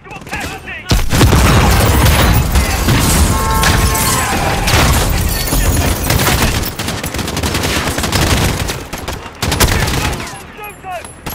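Gunfire and explosions rumble loudly and steadily.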